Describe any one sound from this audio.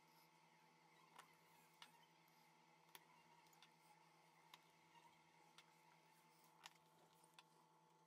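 A screwdriver clicks and taps against small screws on a phone's frame.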